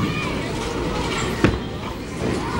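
Bowling balls clack together on a ball return.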